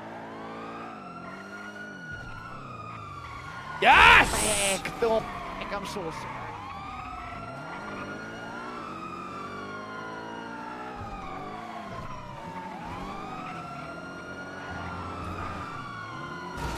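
A car engine revs hard and shifts gears again and again.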